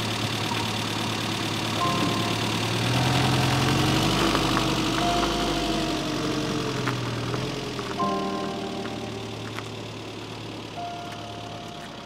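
A classic Mini drives up the road toward the listener.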